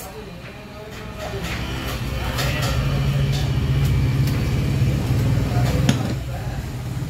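Thick juice pours from a jug and splashes into a glass.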